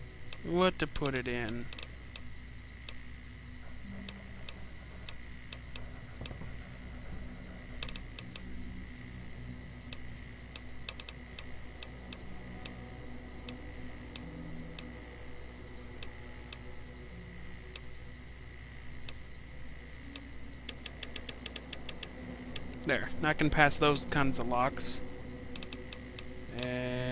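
Soft interface clicks tick as menu options change.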